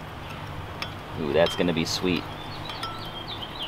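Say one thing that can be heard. A metal spoon stirs and clinks against a glass cup.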